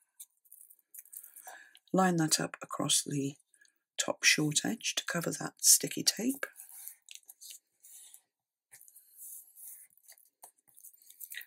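Paper rustles and crinkles softly as hands press it down.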